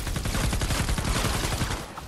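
Lightning crackles and booms.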